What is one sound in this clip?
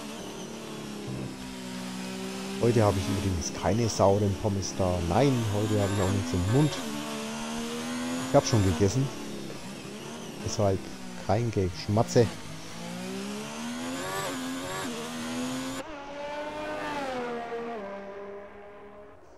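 A racing car engine screams, rising and falling in pitch as it shifts gears.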